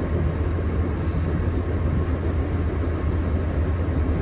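A van drives past on a road nearby.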